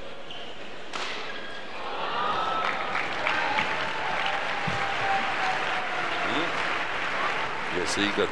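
A shuttlecock is struck sharply by rackets back and forth.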